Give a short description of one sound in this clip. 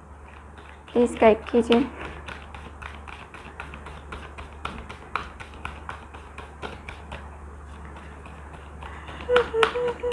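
Playing cards are shuffled, riffling and flicking quickly.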